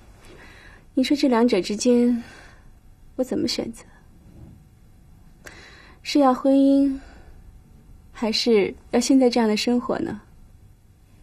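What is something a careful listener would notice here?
A young woman speaks calmly and thoughtfully, close by.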